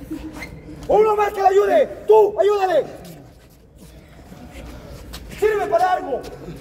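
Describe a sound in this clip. A man shouts and cries out in pain.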